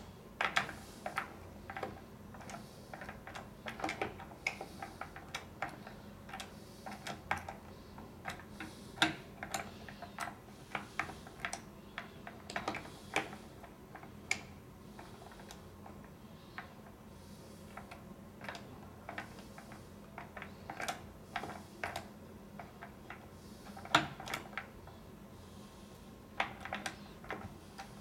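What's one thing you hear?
Small metal tools click and scrape against a lock mechanism.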